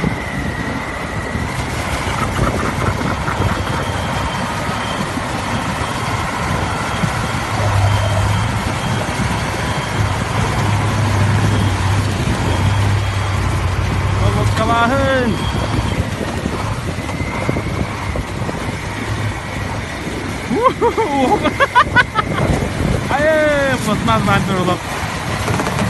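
Snow crunches under heavy truck tyres.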